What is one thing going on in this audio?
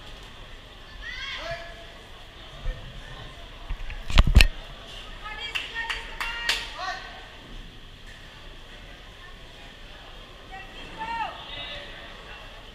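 Spectators shout and cheer loudly now and then.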